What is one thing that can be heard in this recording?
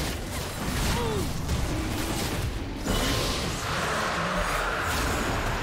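Spell effects crackle and burst in a video game battle.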